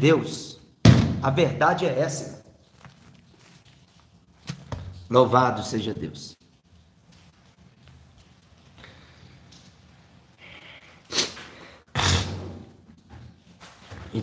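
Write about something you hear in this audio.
A young man speaks calmly and close to the microphone, in short bursts with pauses.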